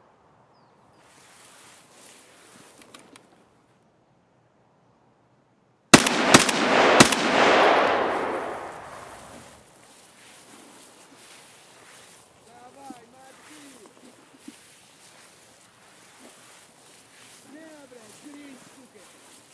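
Tall grass rustles as someone walks through it.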